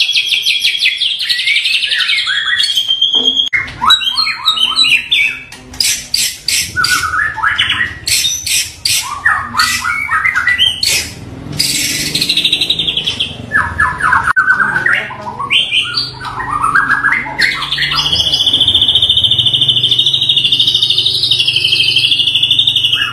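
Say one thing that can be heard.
A songbird sings loud, varied whistling phrases and trills close by.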